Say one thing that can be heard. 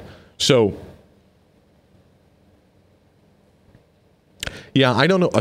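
An elderly man speaks calmly into a close microphone, pausing between phrases.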